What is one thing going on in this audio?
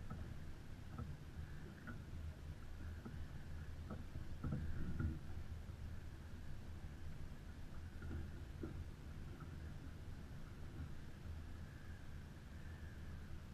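Water splashes against a sailboat's hull.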